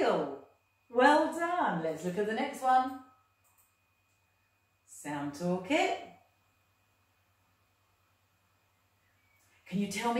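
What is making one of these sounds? A woman speaks clearly and calmly, close by, with pauses between phrases.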